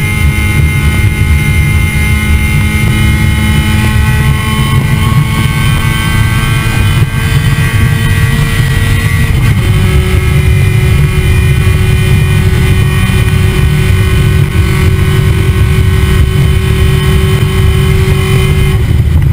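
A race car engine roars loudly, close up, with its pitch shifting as the driver changes gear.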